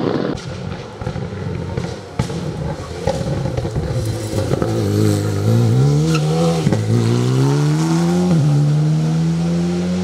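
A racing car engine roars and revs hard, dropping in pitch with each gear change.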